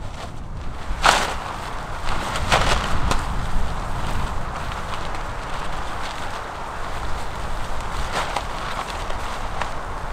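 A tarp flaps and rustles as it is shaken out.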